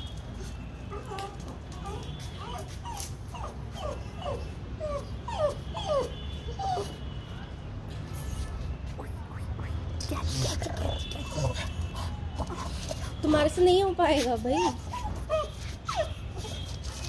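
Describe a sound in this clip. A small dog whines and barks excitedly up at a tree.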